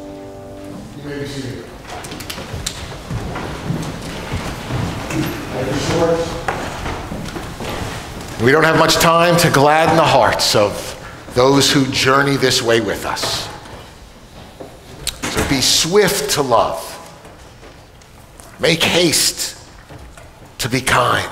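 An older man speaks calmly through a microphone and loudspeakers in an echoing hall.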